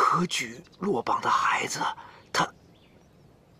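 A middle-aged man speaks pleadingly, close by.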